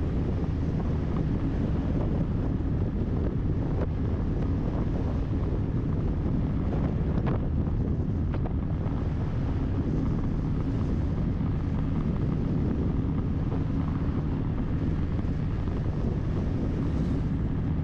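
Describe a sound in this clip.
Wind buffets loudly against a moving vehicle outdoors.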